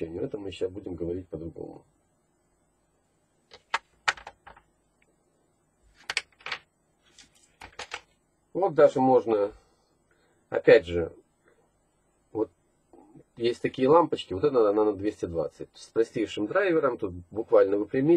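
Small metal and plastic parts click and rattle as they are handled.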